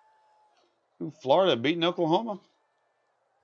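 A man speaks loudly and with animation into a close microphone.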